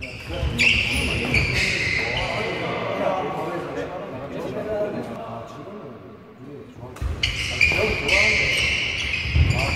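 Sports shoes squeak sharply on a hard court floor.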